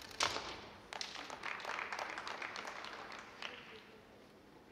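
An audience claps briefly in a large echoing hall.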